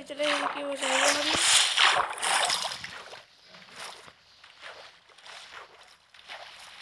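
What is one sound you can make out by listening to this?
Water splashes and sloshes close by.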